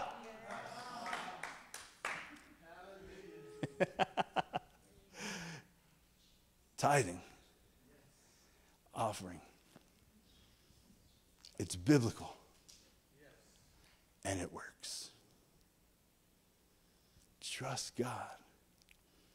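A man speaks through a microphone in a large echoing hall, with pauses between phrases.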